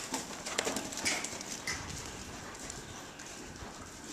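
A horse's hooves thud on soft ground close by.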